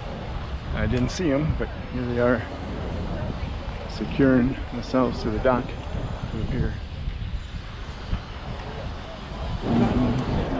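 A man talks close by, outdoors.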